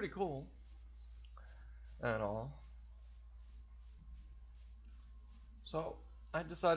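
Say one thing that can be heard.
Footsteps rustle steadily through grass.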